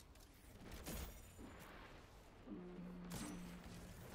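Single loud gunshots crack now and then.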